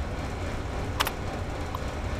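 A terminal key clicks sharply once.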